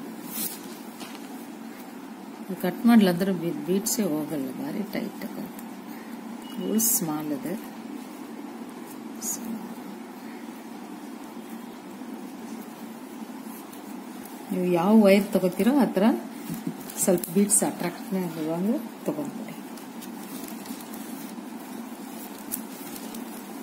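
Stiff plastic cords rustle and tick softly as they are handled.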